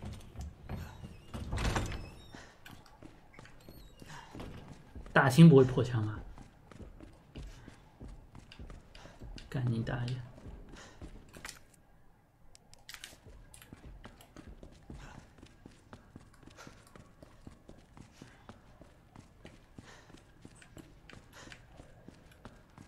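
Footsteps thud steadily on wooden floors and stairs.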